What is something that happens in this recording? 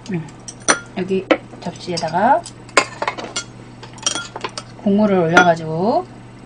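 Metal chopsticks and spoons clink against dishes.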